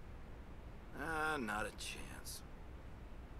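A man speaks briefly in a casual tone.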